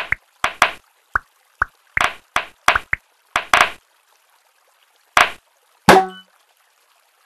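Game balls pop with short bright clicks.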